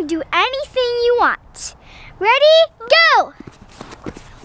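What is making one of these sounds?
A young girl speaks brightly and with animation close by.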